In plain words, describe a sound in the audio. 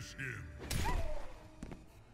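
A heavy punch lands with a wet splatter.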